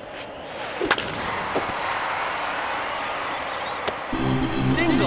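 A crowd cheers in a large stadium.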